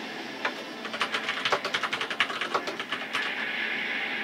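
Short electronic menu clicks tick in quick succession.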